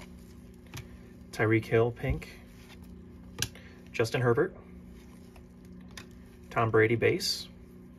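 Trading cards slide and click softly against each other in someone's hands.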